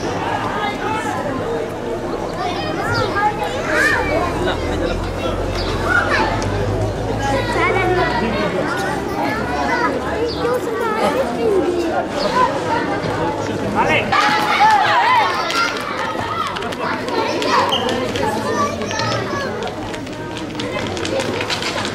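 A bull's hooves clatter on the street.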